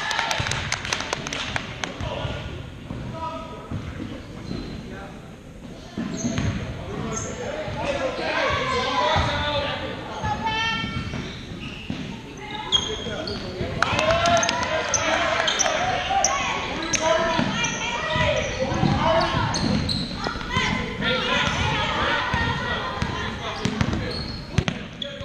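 Spectators chatter and call out in an echoing gym.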